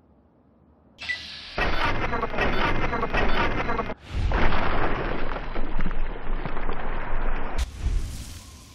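A weapon fires.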